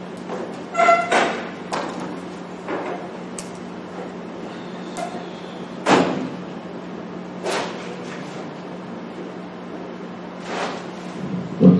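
Papers rustle and thump on a table.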